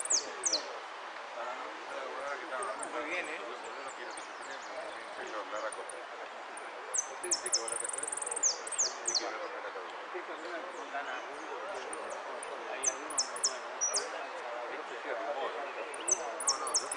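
A finch sings high, quick whistled notes.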